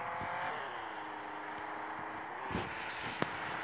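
A car engine hums and slows as the car drives.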